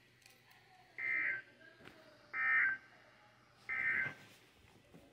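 An alarm clock beeps in short repeated bursts.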